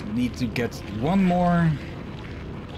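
A young man speaks briefly through a microphone.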